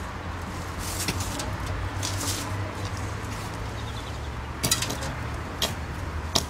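An aluminium ladder rattles and clanks as a man handles it.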